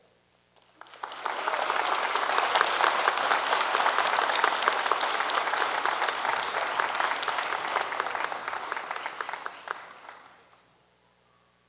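An audience claps loudly, then the applause fades away.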